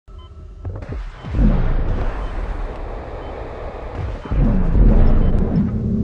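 A heavy metal machine rumbles and whooshes loudly.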